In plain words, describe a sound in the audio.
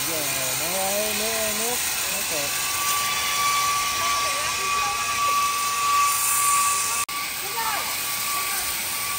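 A pressure washer sprays a hissing jet of water against wood.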